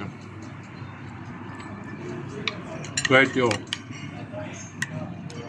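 A spoon scrapes and clinks against a ceramic dish.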